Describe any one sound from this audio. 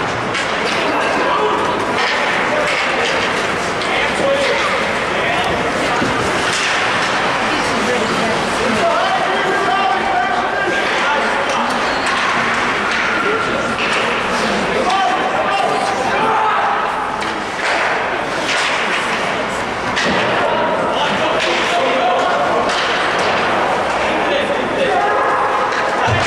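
A crowd of spectators talks and murmurs in a large echoing rink.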